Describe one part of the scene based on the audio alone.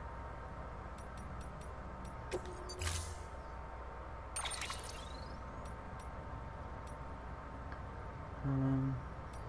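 Short electronic menu clicks tick as a selection moves.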